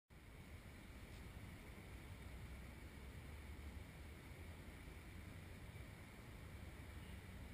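Wind buffets the microphone steadily outdoors.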